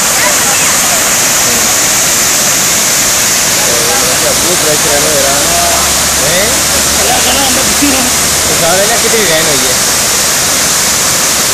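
Floodwater roars steadily as it pours over a weir.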